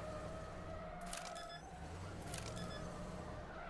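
Explosive charges blast.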